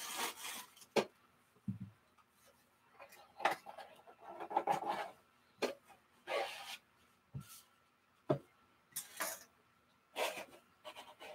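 A box knocks on a table.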